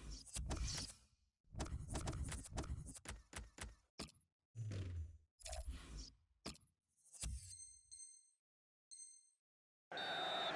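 Menu clicks and swishes sound in quick bursts.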